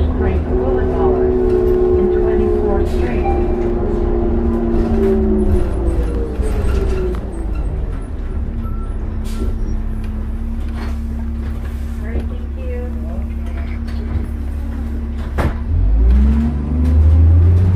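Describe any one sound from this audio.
A bus engine hums and drones as the bus drives along.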